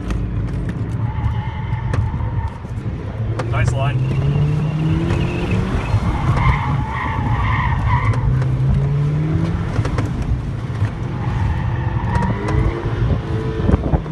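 Tyres squeal on pavement through tight turns.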